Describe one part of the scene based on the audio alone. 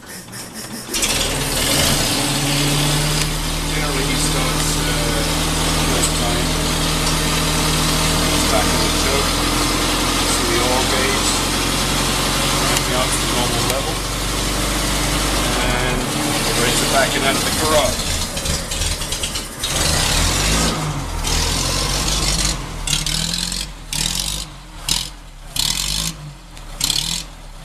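An old car engine starts and runs with a steady, loud idle.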